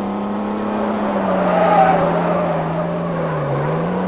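Tyres screech as a car skids.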